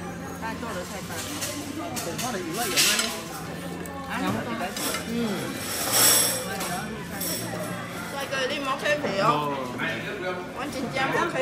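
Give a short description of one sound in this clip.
Middle-aged women chat and laugh close by.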